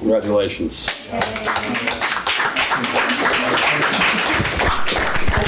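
A small audience applauds in a room.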